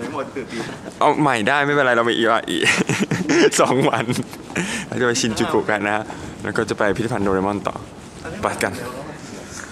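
A young man talks cheerfully, close to a microphone.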